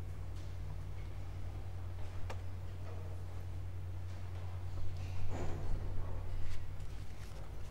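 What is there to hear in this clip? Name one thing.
A congregation shuffles and murmurs quietly in a large echoing hall.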